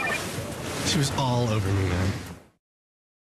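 A young man talks into a phone.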